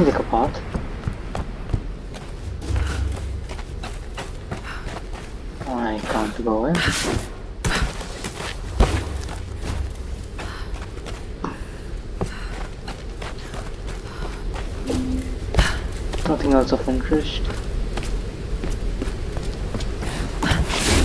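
Footsteps crunch on dirt and stone.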